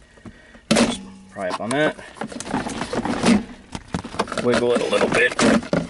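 Hard plastic clicks and knocks as a hand handles a panel.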